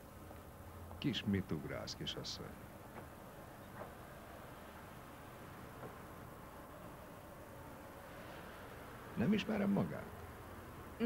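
A man speaks calmly and quietly nearby.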